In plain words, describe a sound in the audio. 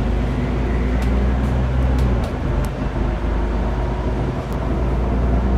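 The bus body rattles and clicks as it drives.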